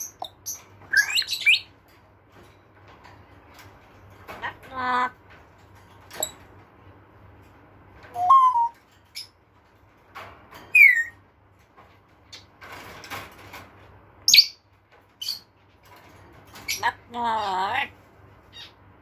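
A parrot whistles and squawks in short bursts close by.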